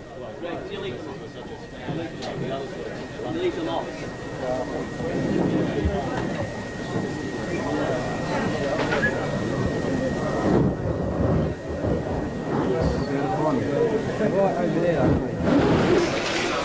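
A crowd of men and women chatter in a room.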